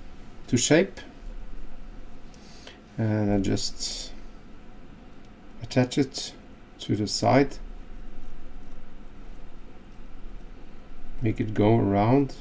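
A man talks calmly and close by, in short phrases.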